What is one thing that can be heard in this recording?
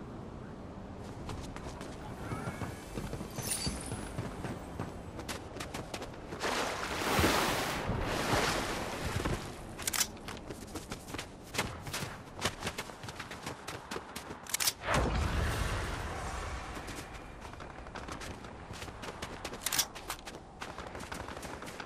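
Footsteps patter quickly on the ground as a game character runs.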